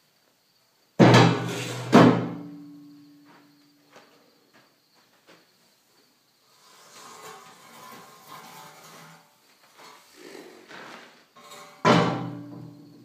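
Metal beams clang as they are dropped and dragged.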